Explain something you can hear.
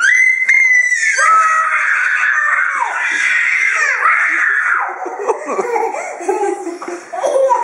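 A young boy shouts excitedly close by.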